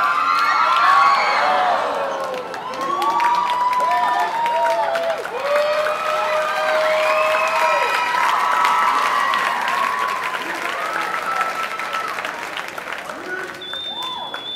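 Children shout and cheer in an echoing hall.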